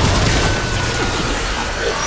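A blast booms loudly.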